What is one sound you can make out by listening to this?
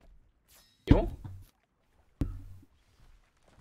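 A young man makes short sounds close to a microphone.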